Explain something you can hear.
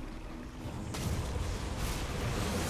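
Fiery blasts roar and crackle loudly.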